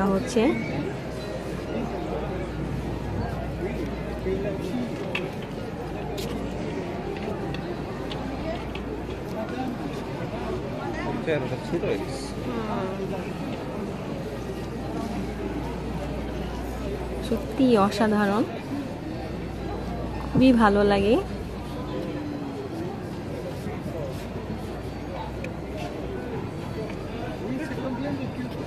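A crowd murmurs and chatters steadily outdoors.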